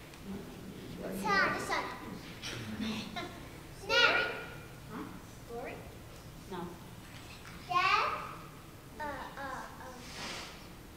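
Young children call out answers in high voices.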